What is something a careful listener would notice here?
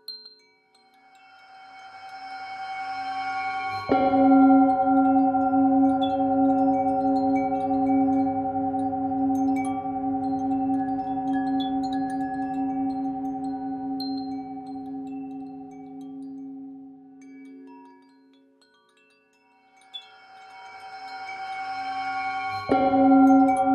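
A singing bowl hums louder and louder as a mallet rubs around its rim.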